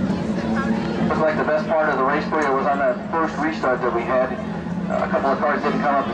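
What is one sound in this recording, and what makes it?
A man speaks into a microphone, heard over a loudspeaker in an open outdoor space.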